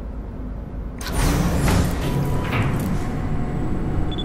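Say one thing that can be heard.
Metal elevator doors slide shut with a whoosh.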